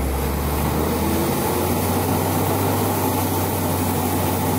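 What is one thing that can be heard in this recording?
A six-cylinder diesel engine of a rear-engined city bus runs.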